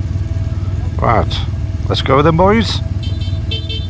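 A motorcycle engine revs up sharply a few times.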